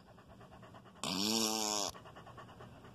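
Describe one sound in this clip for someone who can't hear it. A dog gives a short whine close by.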